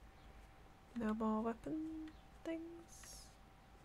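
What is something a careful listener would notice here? A young woman hums a few short notes close to a microphone.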